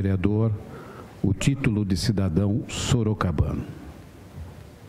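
A man speaks through a microphone over loudspeakers in a large hall.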